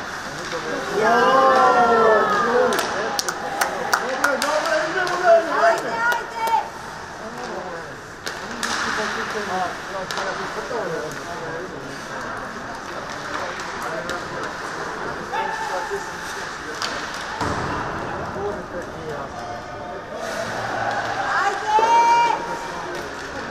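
Men shout to one another across the rink.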